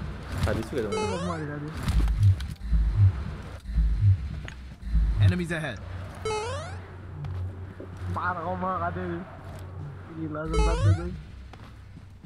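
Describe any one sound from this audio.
A young boy talks excitedly into a close microphone.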